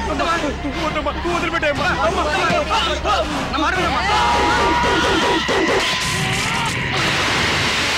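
A crowd of men shouts noisily.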